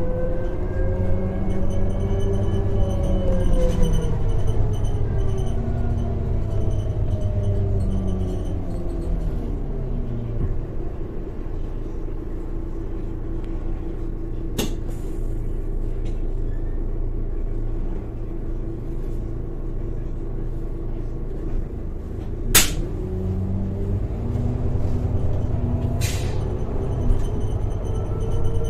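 A bus engine hums and whines steadily, its pitch rising and falling as the bus speeds up and slows.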